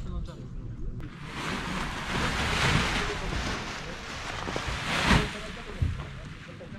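Wind gusts loudly across an open hillside.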